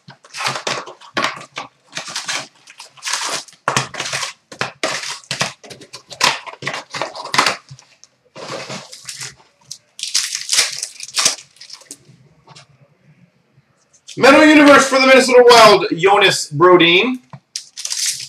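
Foil wrappers crinkle and tear as packs are opened.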